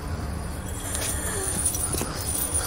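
A heavy chain clanks and rattles.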